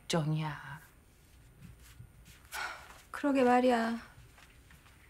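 A middle-aged woman speaks emotionally, close by.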